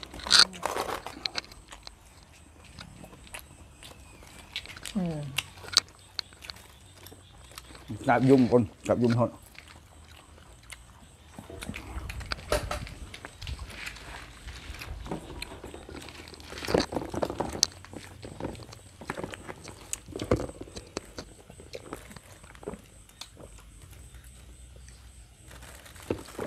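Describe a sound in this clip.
Spoons and dishes clink lightly.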